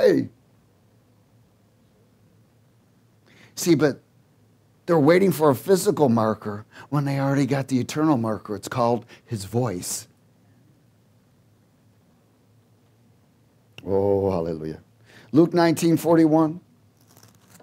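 A middle-aged man speaks with animation through a headset microphone, pausing now and then.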